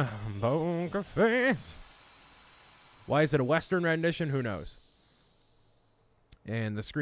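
A bright magical chime shimmers and fades away.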